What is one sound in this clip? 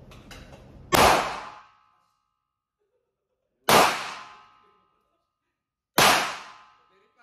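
A handgun fires loud single shots indoors.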